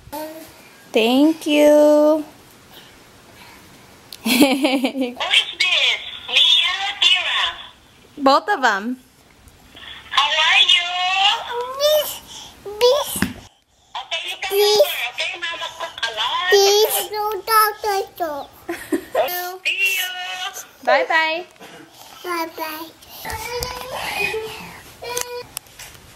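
A toddler babbles and squeals nearby.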